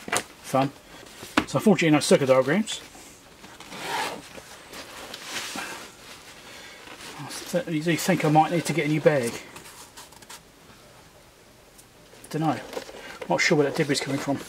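A bag's fabric rustles as hands handle it.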